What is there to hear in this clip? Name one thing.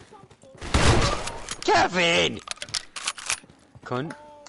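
Gunshots crack in a rapid burst.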